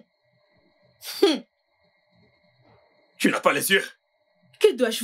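A young woman speaks angrily in short bursts, close by.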